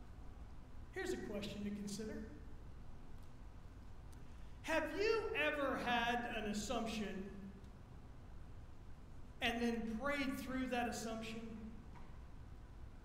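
A middle-aged man speaks calmly through a microphone in a large echoing hall, with long pauses.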